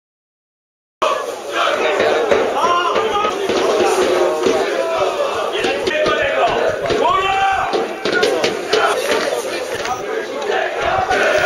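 A crowd of fans chants and sings loudly outdoors.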